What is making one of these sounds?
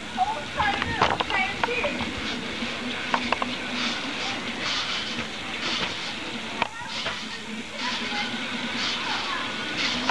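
Teenage boys and girls shout and talk excitedly outdoors.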